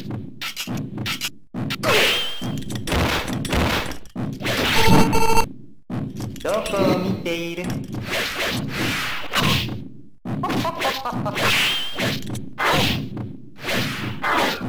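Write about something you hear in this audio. Blows land with sharp hits and crashes.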